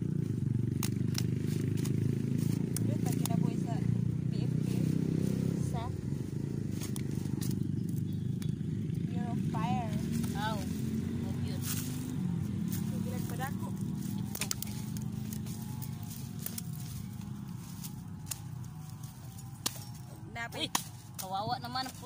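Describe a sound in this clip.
A machete hacks into roots and soil.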